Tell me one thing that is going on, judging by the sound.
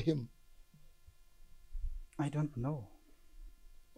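A young man speaks in a strained, hesitant voice close by.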